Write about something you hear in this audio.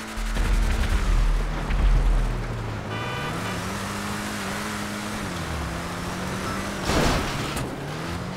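A car engine hums and revs steadily as the car drives.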